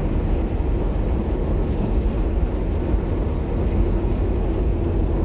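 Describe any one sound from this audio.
A car drives steadily along a paved road, its tyres rumbling.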